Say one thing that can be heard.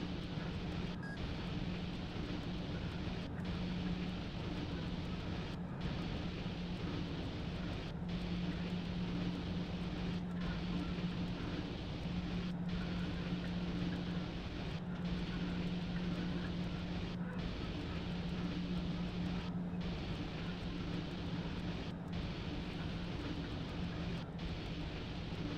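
An electric locomotive hums steadily from inside its cab.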